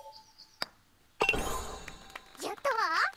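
A golf ball drops into the cup with a bright chime.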